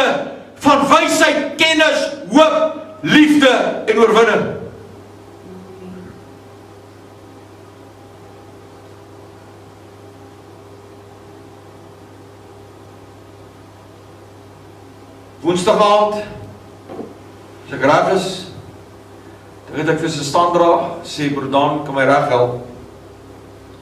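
An older man preaches with animation through a microphone.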